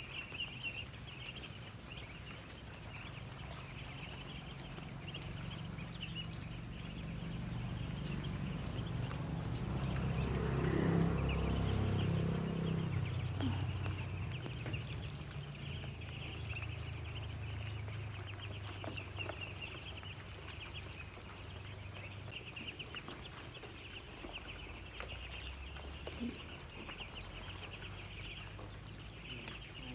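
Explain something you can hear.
A large flock of ducklings peeps constantly in a shrill chorus.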